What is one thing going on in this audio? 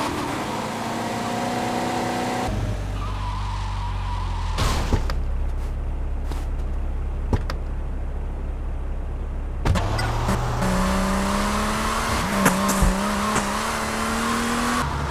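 A car engine hums as a car drives along.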